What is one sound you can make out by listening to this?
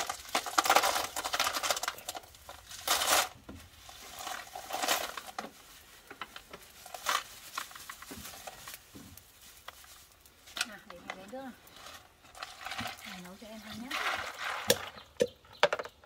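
Water splashes as hands wash food in a basin.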